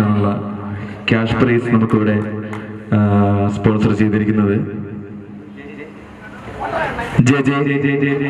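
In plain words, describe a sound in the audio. A man talks loudly through a microphone and loudspeakers.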